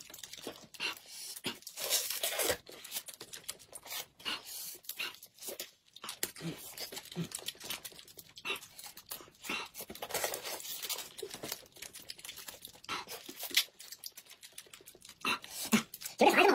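Plastic wrappers crinkle and rustle as they are torn open.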